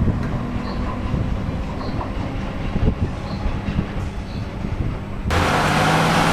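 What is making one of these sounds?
An electric train hums as it slowly pulls into a station.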